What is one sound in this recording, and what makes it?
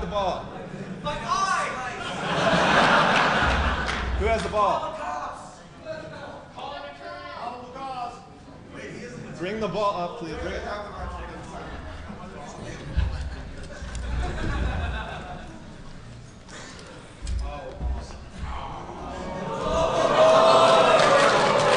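A young man speaks with animation through a microphone in a large hall.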